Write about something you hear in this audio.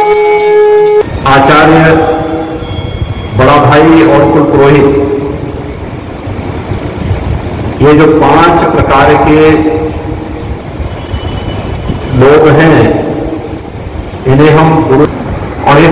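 A man speaks slowly through a microphone and loudspeaker, pausing between phrases.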